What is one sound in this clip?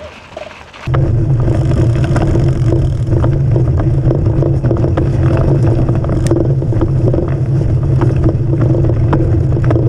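A bicycle's tyres roll and rumble over a rough dirt trail.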